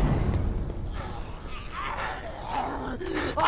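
A creature snarls and growls nearby.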